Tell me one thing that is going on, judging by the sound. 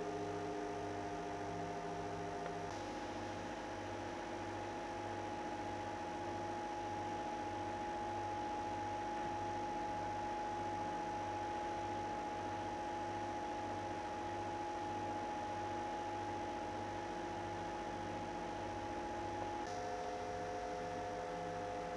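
Fan blades whir and rush air.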